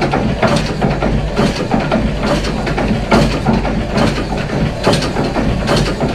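Small wagons rumble and clatter along rails close by.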